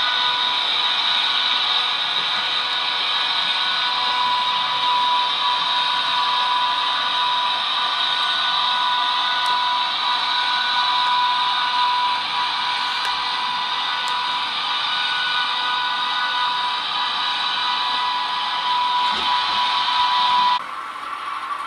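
A model train rolls steadily along the track with a whirring hum.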